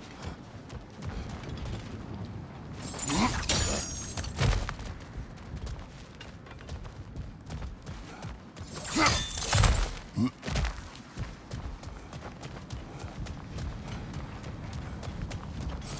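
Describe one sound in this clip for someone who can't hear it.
Heavy footsteps thud on rocky ground.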